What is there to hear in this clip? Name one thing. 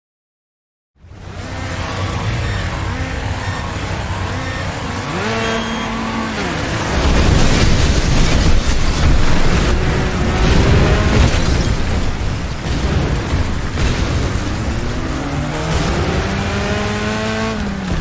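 Car engines rev and roar.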